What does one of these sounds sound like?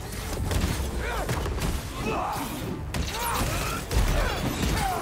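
Heavy blows and impacts thud during a fight.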